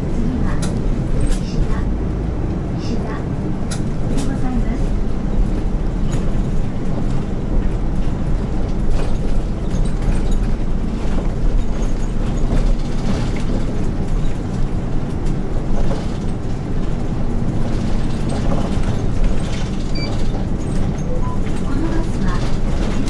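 The inside of a bus rattles and clicks over bumps.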